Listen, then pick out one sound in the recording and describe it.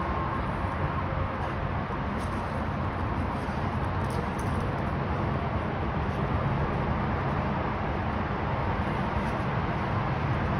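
Dogs growl and snarl.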